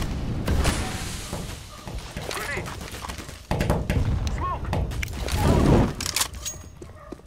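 Metal clicks and rattles as a gun is drawn and handled.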